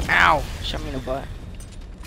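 Metal crashes and scrapes on impact.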